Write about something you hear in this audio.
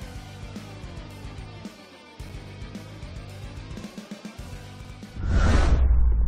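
Upbeat music plays.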